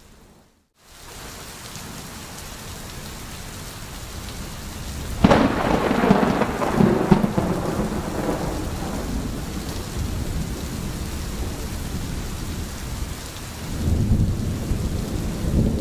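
A stream gurgles steadily over stones.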